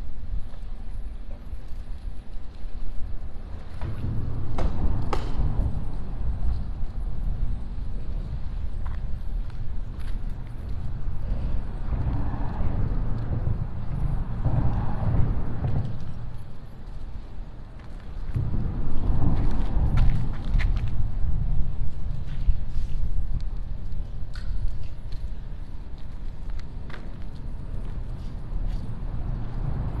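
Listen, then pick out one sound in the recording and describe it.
Water laps against a wall.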